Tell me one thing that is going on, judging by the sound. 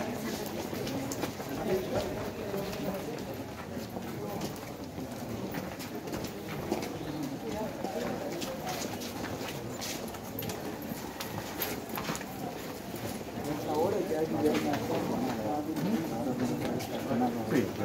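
Several people talk at once nearby, outdoors.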